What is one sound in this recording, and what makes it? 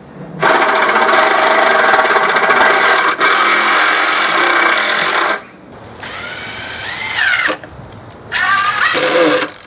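A cordless drill whirs in bursts as it drives screws into wood.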